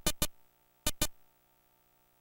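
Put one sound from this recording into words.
Short electronic game beeps sound in two quick pairs.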